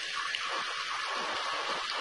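Water pours into a pot with a splash.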